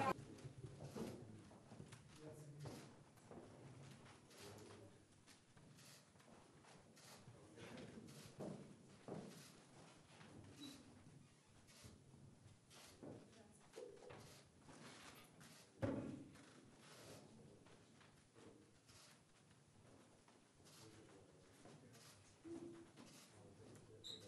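An elderly man talks quietly nearby.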